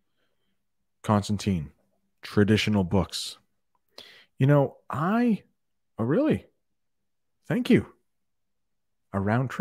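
A middle-aged man speaks into a close microphone in short, expressive phrases with pauses.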